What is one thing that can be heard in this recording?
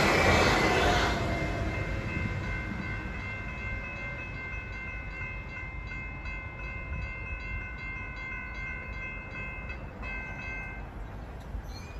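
A railway crossing bell rings steadily nearby.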